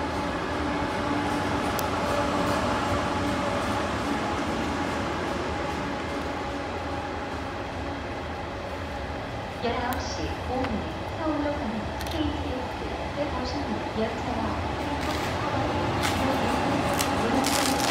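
A high-speed train rushes past with a steady rumble and whoosh.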